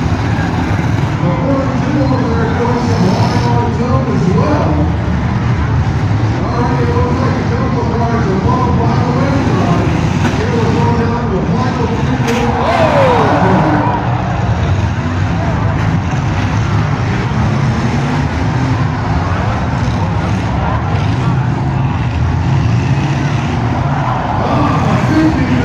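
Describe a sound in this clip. A crowd chatters and cheers nearby.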